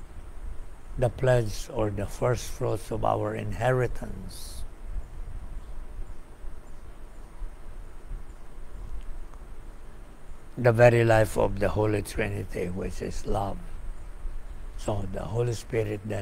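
An elderly man speaks calmly and slowly into a nearby microphone, with long pauses.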